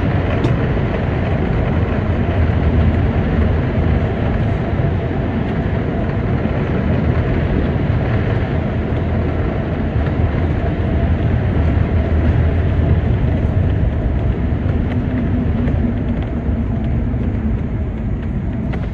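A car's engine hums steadily as it drives along a highway.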